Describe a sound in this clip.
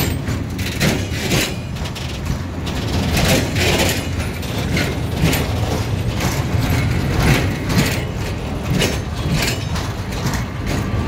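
A freight train rolls slowly past close by, its wheels clacking rhythmically over rail joints.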